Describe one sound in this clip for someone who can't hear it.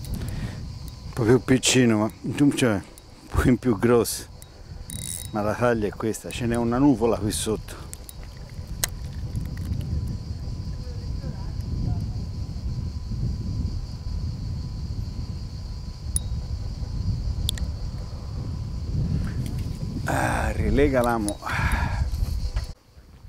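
A middle-aged man talks calmly, close to a clip-on microphone.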